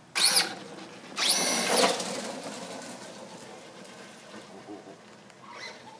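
A remote-control toy car's electric motor whines in sharp high-pitched bursts as it speeds off and fades into the distance.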